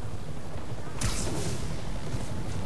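A sharp whoosh of rushing air sweeps past.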